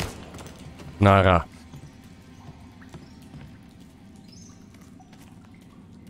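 Footsteps echo softly in a stone tunnel.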